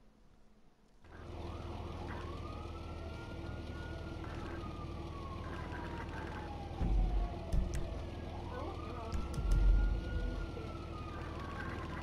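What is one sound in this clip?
A small motor hums steadily.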